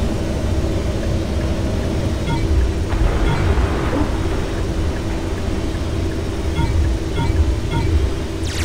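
Short electronic beeps chirp now and then.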